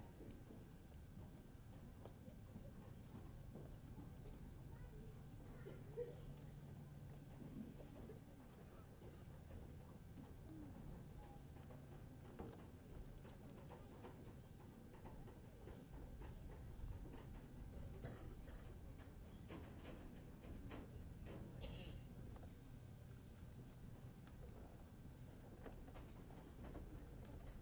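A crowd murmurs faintly outdoors in a wide open space.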